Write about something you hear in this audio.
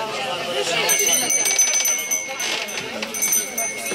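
A wooden press lever creaks and thumps as it is pulled.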